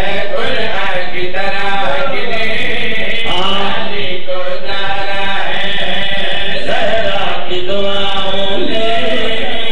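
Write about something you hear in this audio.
A young man sings loudly through a microphone, echoing in a hall.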